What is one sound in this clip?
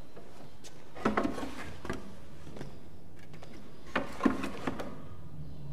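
Large canvases knock and scrape as they are moved.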